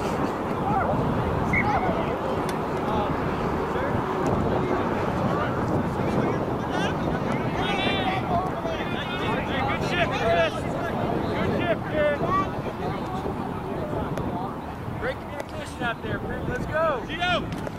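Men shout and call out to one another outdoors.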